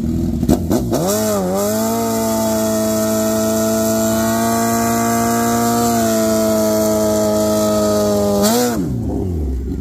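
A motorcycle engine revs high and holds at a steady scream, then drops.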